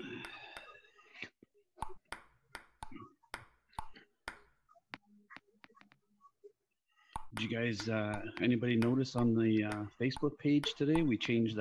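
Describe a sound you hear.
A table tennis ball clicks back and forth off paddles and a table in a quick rally.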